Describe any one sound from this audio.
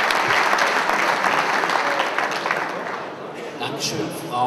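A crowd applauds in a large hall and the applause fades.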